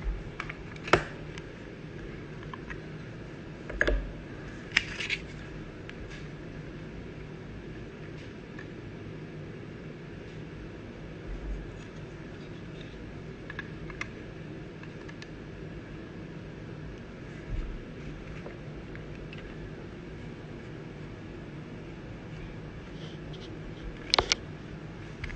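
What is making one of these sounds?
Plastic card cases click and tap as hands handle them.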